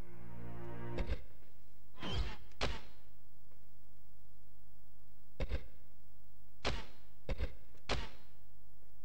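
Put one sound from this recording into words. Short electronic menu blips sound several times.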